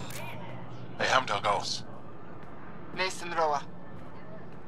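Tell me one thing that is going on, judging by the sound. A man speaks nervously and briefly.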